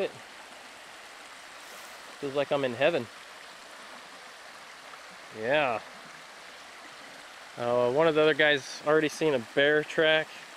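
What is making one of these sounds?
A shallow stream trickles and babbles over rocks.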